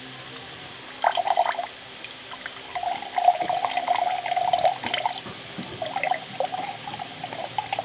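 Juice pours and splashes into a glass.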